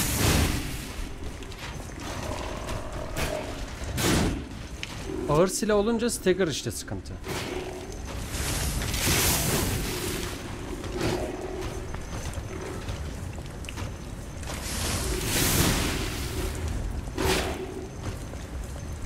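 Heavy blows strike and clang in a fight.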